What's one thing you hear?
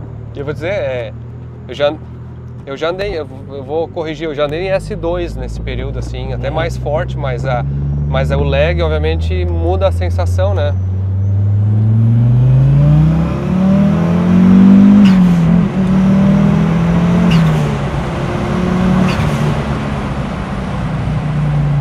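A car engine revs and accelerates, rising in pitch.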